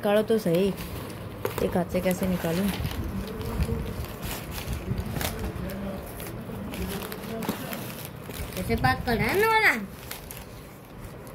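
A cloth bag rustles as it is handled.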